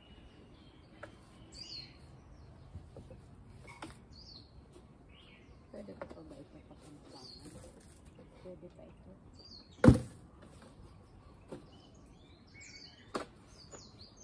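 Plastic flower pots knock and clatter together.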